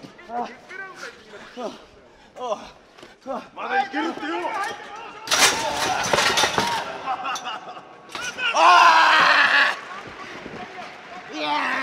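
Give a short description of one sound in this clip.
A wrestler's body slams onto a ring mat with a loud thud.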